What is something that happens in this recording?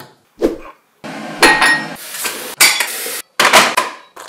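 Tap water runs and splashes steadily.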